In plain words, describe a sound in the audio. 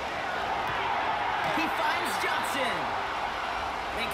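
Football players collide in a tackle with a thud.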